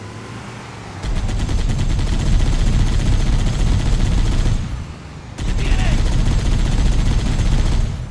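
A machine gun fires in rapid bursts.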